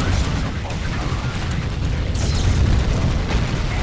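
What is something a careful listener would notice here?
Guns fire rapidly.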